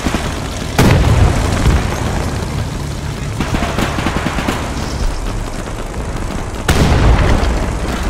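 A tank cannon fires with loud, sudden booms.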